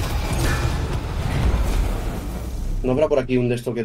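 Video game effects rumble and whoosh loudly.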